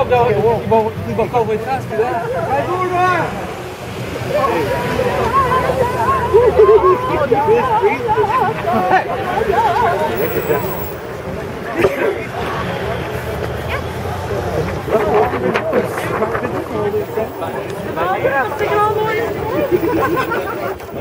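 A crowd of people chants and shouts loudly outdoors nearby.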